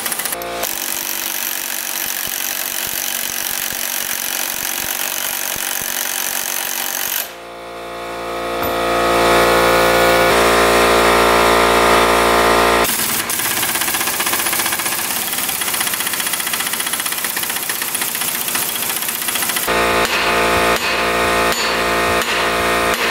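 A pneumatic impact wrench hammers on a nut.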